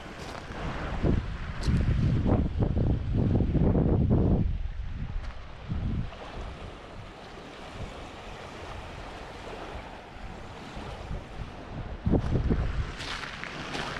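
Wind blows outdoors in gusts across the microphone.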